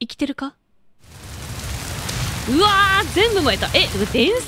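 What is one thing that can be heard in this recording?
A large fire roars and crackles.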